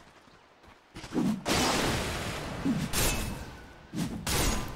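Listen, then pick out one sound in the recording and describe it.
Video game combat sounds crash and burst with spell effects.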